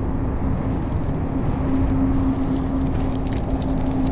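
Footsteps crunch over forest ground.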